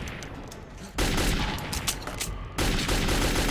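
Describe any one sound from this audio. A rifle's magazine is swapped with metallic clicks.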